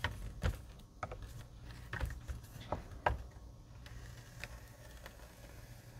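A bone folder scrapes along a paper crease.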